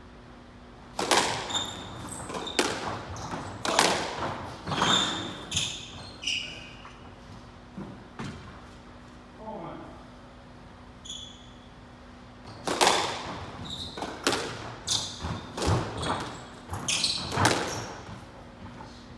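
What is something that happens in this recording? Rackets strike a squash ball with sharp cracks.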